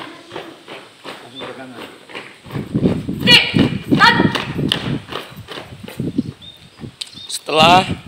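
Young women chant and call out loudly together nearby.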